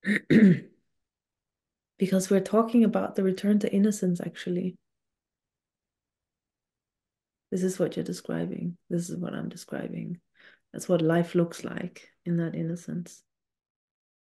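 A woman talks calmly and thoughtfully over an online call.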